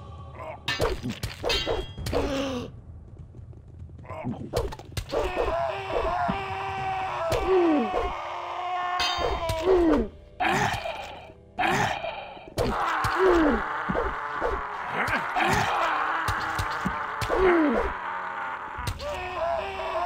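A blade strikes flesh with wet thuds.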